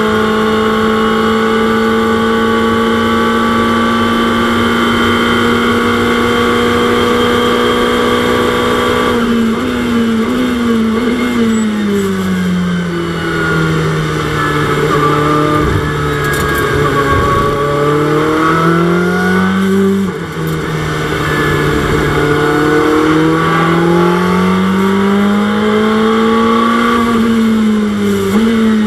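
A racing car engine roars steadily, then drops in pitch and revs up again through the gears.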